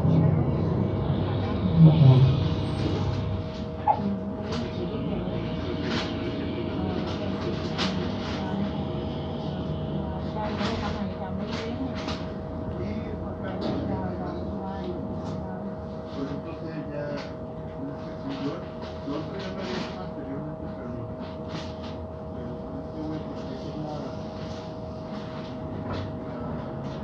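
A bus engine idles with a low steady rumble, heard from inside.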